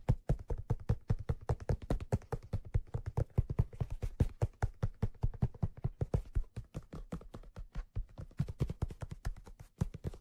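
Fingers tap rapidly on a padded leather cushion close to a microphone.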